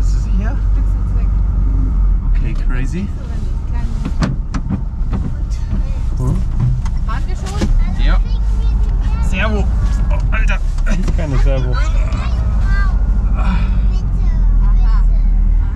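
An old engine rumbles and drones steadily inside a vehicle.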